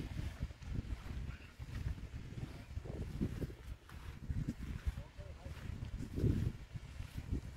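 Wind gusts and buffets outdoors.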